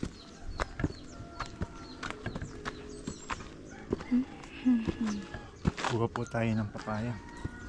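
Footsteps crunch on dry ground and leaves.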